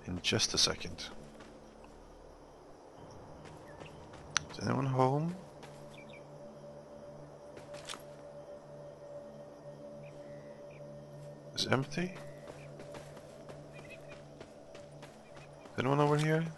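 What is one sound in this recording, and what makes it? Footsteps crunch quickly on dirt.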